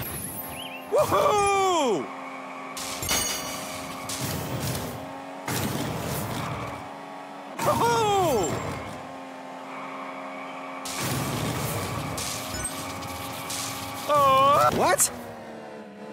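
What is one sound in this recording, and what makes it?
A kart's speed boost whooshes several times.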